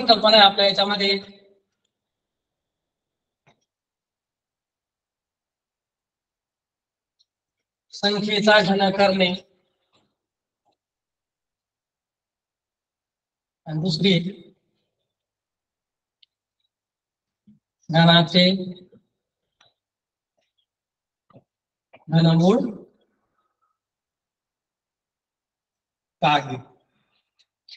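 A young man speaks aloud in short phrases, pausing between them.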